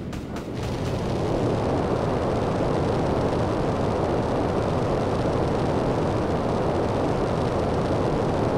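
A jetpack roars steadily with a rushing, hissing thrust.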